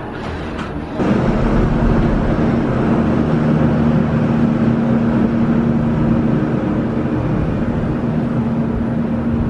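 A cable car cabin hums and rumbles steadily as it rides along its cable.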